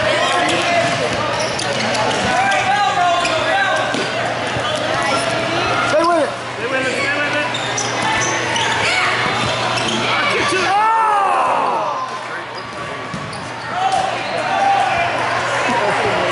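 Young players shout and call out across a large echoing sports hall.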